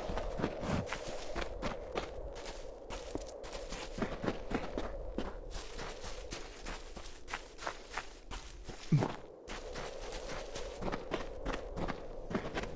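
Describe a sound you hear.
Quick footsteps run over grass and stone.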